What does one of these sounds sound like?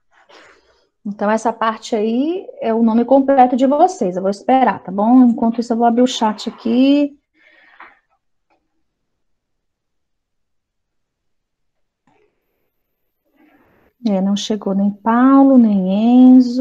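A woman speaks with animation through an online call microphone.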